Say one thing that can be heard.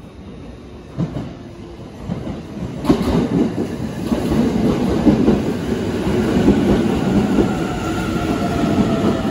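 A train approaches and rushes past with a loud rumble and rattle.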